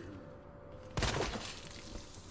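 A gunshot cracks once.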